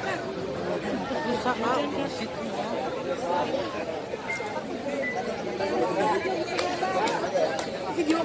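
A large crowd of men and women chatters and calls out loudly all around.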